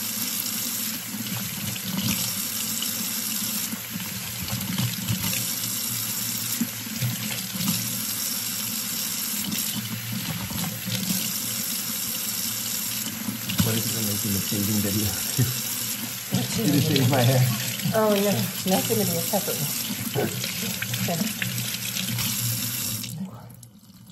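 Water runs steadily from a tap.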